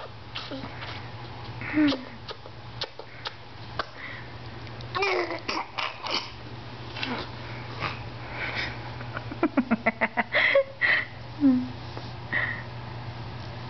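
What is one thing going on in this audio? A baby babbles and coos close by.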